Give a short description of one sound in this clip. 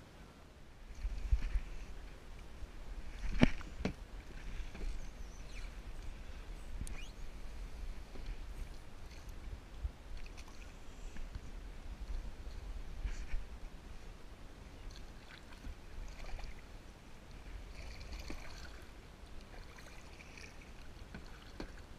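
A paddle splashes and dips into calm water.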